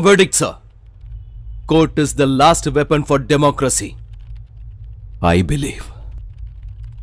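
A man speaks forcefully and loudly, close by.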